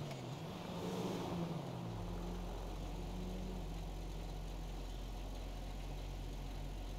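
A car engine hums and revs as the car drives and turns.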